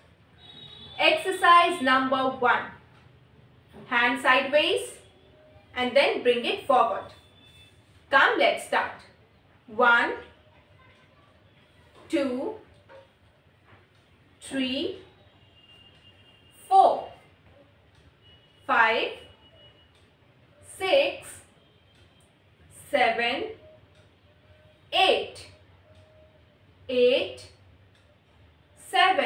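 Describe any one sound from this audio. A young woman calls out instructions in short, regular bursts close by.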